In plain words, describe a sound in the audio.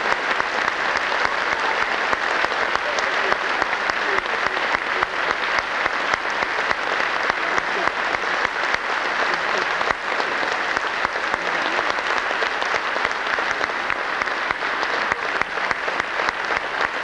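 A group of children and women sing together in a large echoing hall.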